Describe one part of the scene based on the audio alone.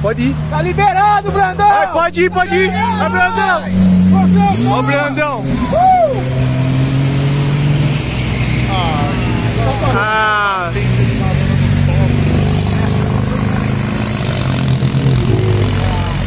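A sports car engine roars and revs loudly close by.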